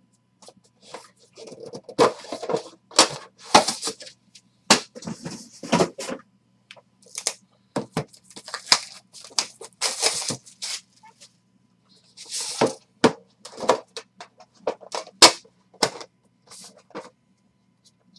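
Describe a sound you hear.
Plastic wrapping crinkles and tears by hand.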